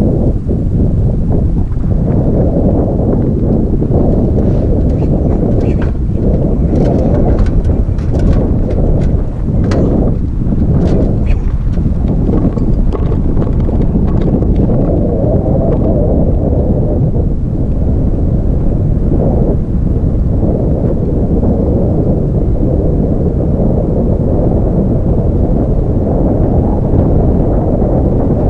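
Strong wind buffets the microphone outdoors with a steady low rumble.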